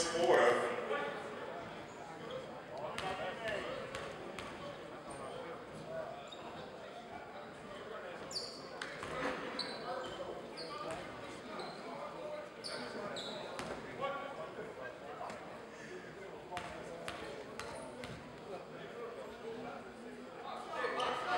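A basketball bounces on the court with echoing thuds.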